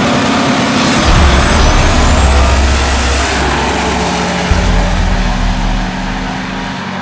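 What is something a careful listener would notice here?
Two race cars launch and roar away at full throttle.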